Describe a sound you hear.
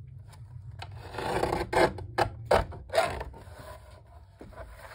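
A paper trimmer blade slides and cuts through paper.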